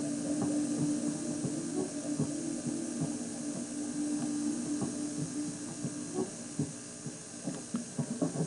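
A television plays a steady humming tone with soft thumps through its small speaker.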